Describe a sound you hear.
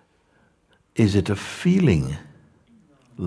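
An elderly man speaks calmly, close by.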